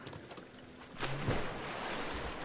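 Water splashes loudly as a body drops into it.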